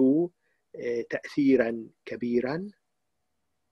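An elderly man speaks close to a microphone.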